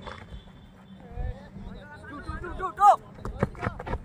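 Young men call out to each other in the distance.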